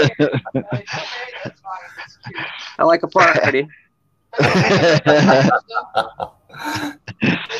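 A middle-aged man laughs heartily over an online call.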